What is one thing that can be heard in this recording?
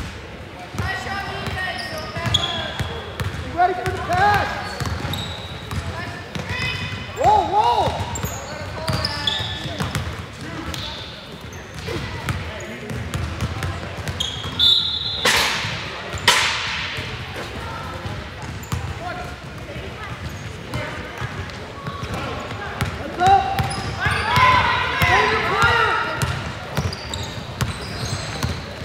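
Young women call out to each other across the court.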